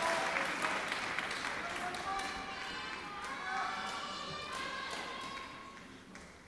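A crowd applauds in a large echoing hall, and the clapping slowly fades.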